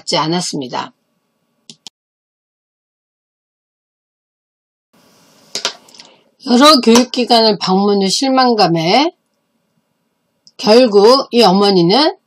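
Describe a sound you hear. A middle-aged woman speaks calmly and clearly into a microphone, with pauses.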